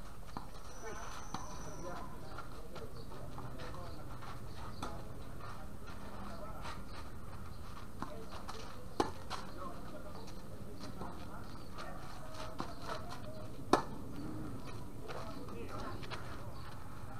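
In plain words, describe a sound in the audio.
Tennis rackets strike a ball with sharp pops, back and forth.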